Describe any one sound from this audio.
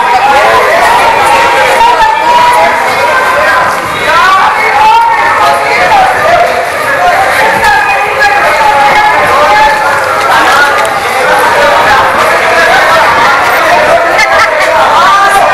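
A crowd of men and women shouts and chants loudly outdoors.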